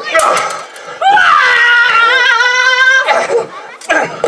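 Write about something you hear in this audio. A woman cries out in a high voice.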